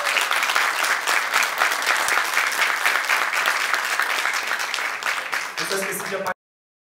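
An audience claps and cheers loudly in a hall.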